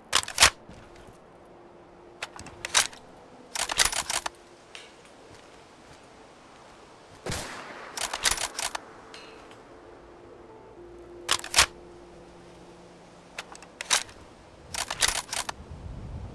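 A sniper rifle is reloaded with metallic clicks.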